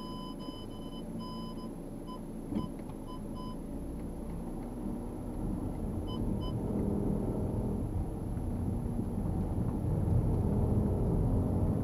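Tyres rumble over cobblestones, growing louder as the car picks up speed.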